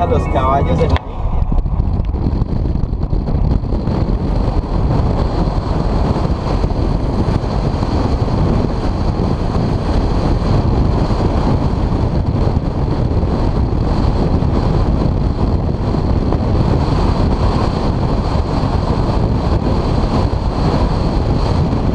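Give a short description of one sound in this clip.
Strong wind roars loudly past a car window at highway speed.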